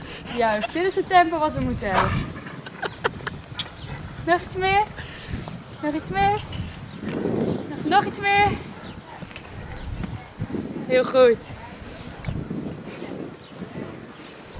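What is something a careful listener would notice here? Hooves thud on soft sand as a horse trots.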